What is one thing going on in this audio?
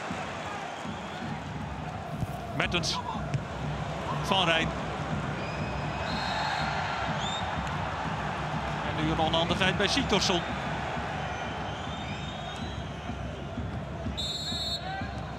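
A large stadium crowd roars and chants steadily outdoors.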